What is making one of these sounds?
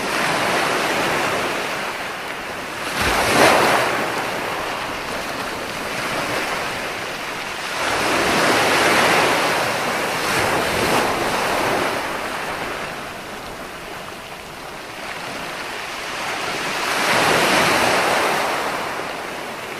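Foamy surf hisses as it spreads across the sand.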